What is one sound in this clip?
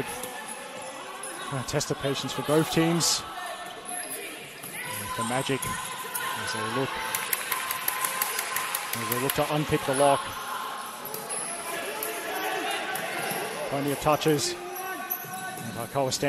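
A crowd of spectators cheers and chatters, echoing in a large hall.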